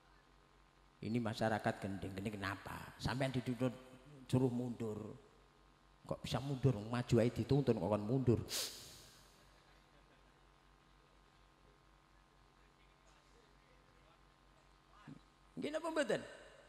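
A middle-aged man speaks through a microphone and loudspeakers, calmly and with pauses.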